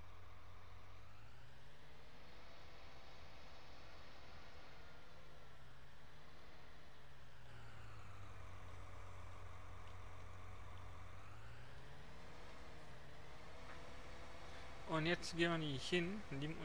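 A tractor engine hums steadily, its pitch rising and falling as it speeds up and slows down.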